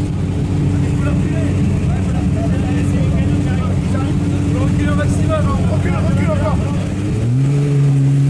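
Men talk and call out outdoors.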